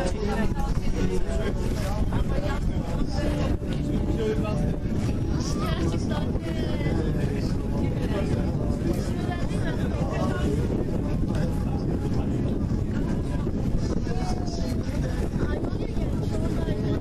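Wind blusters loudly against the microphone outdoors.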